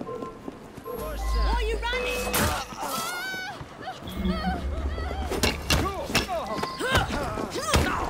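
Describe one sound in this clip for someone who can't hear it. Heavy blows and thuds land in a sudden scuffle.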